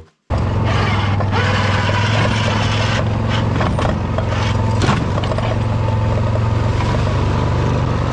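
A small engine runs steadily close by.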